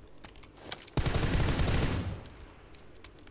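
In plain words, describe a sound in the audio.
A gunshot rings out loudly, then echoes away.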